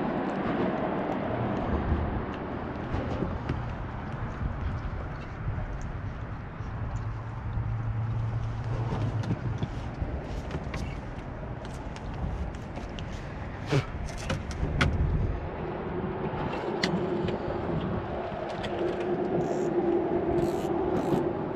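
Water laps against a kayak's hull.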